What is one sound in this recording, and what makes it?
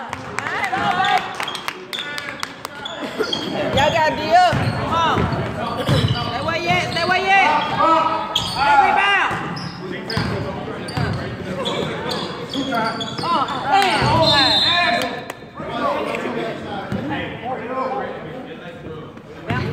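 Spectators nearby talk and cheer loudly.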